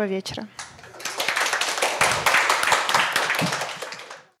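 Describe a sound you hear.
A small audience claps in applause.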